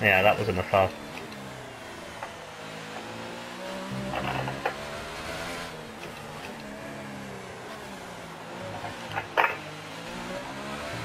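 A racing car engine whines loudly, rising and falling in pitch as it shifts gears.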